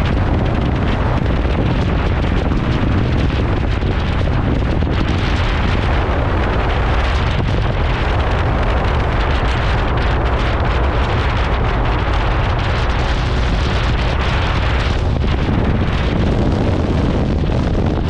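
A motorcycle engine hums steadily while riding along.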